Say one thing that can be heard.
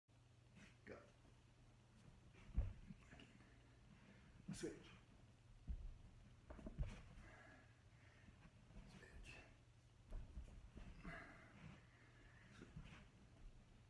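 Bodies thump and shuffle on a carpeted floor.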